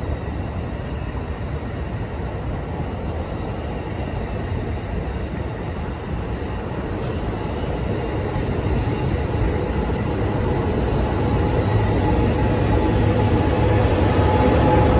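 A passenger train rumbles past close by, wheels clattering on the rails.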